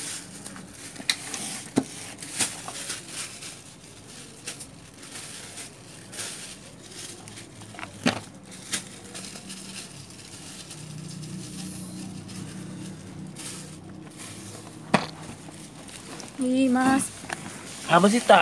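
Plastic wrapping crinkles and rustles as a package is handled.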